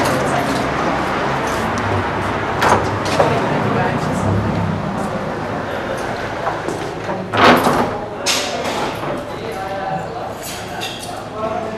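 Footsteps walk on a hard floor indoors.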